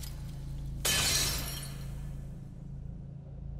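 Glowing sparks burst with a sudden whoosh and crackle, then fade away.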